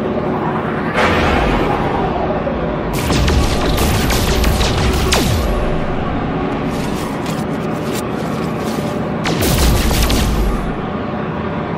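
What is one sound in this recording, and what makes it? A laser beam buzzes as it mines rock.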